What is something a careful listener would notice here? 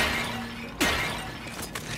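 A blade slashes and strikes with a sharp impact.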